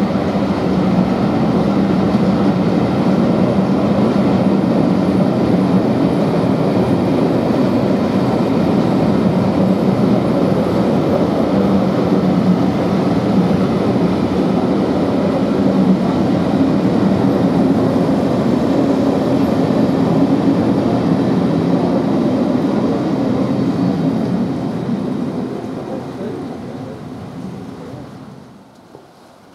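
Train carriages rumble and clatter past close by on the rails, then fade away.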